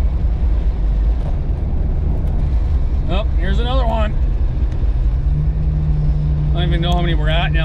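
A car engine drones steadily from inside the car.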